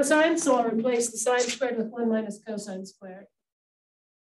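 A woman speaks calmly, as if lecturing.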